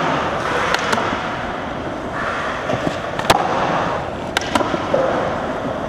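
Skateboard wheels roll and rumble on a smooth floor in a large echoing hall.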